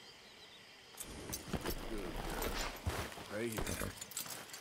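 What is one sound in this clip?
A rider's clothes and saddle gear rustle and creak as the rider climbs down from a horse.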